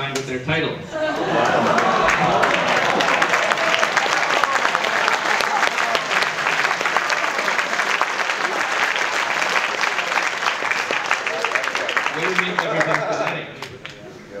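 An audience claps and cheers loudly in a large echoing hall.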